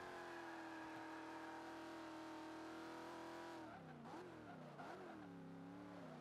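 A car engine roars at steady high revs, then drops and revs up and down through gear changes.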